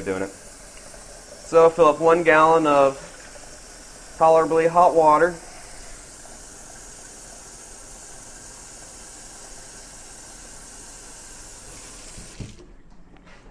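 Water runs from a tap and fills a jug.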